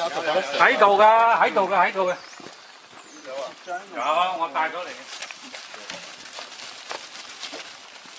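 A plastic bag rustles as an elderly man handles it.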